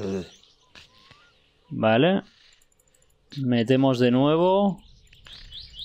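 A young man speaks with animation into a close microphone, drawing out his words.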